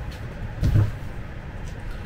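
A cardboard box scrapes and thumps as it is moved.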